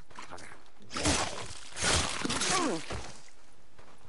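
Heavy blows thud and crack in a brief fight.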